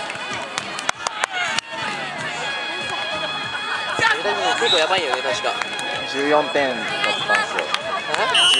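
A crowd of young people shouts and chatters outdoors.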